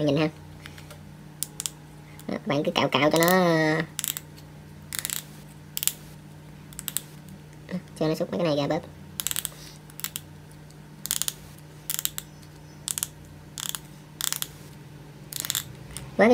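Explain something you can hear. Scissors snip at hard plastic in short crisp cuts.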